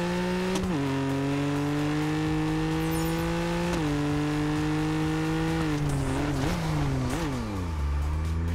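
A sports car engine roars steadily, its pitch dropping with each gear shift and then falling as the car slows.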